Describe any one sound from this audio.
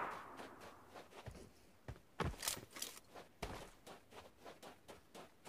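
Footsteps crunch rapidly on dry ground.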